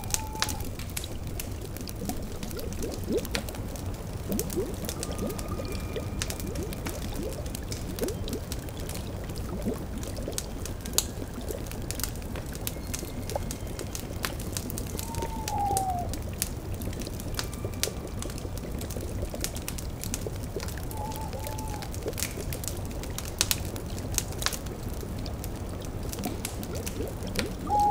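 A fire crackles and pops.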